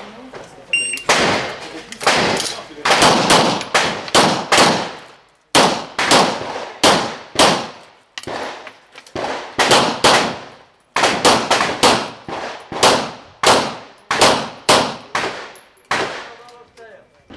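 Pistol shots ring out in quick bursts, each followed by a sharp echo outdoors.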